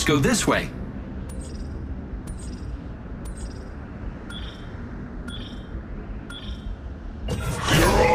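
A countdown timer beeps once a second.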